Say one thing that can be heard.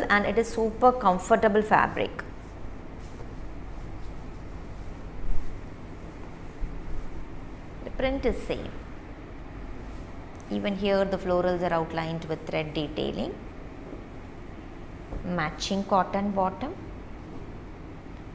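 Cloth rustles softly as it is unfolded and smoothed.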